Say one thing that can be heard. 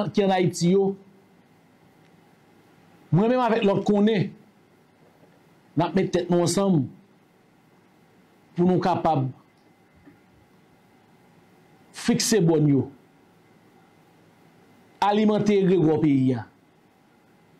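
A man speaks slowly and expressively into a microphone, in short bursts with pauses.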